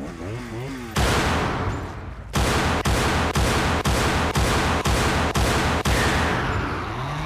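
Gunshots fire in rapid bursts with a ringing echo.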